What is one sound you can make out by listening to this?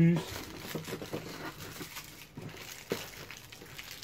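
A cardboard box flap scrapes open.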